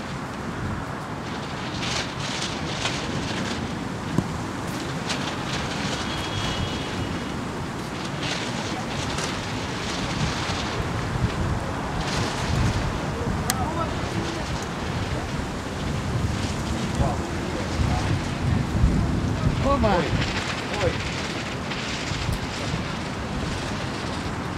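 Wind blusters steadily outdoors across open water.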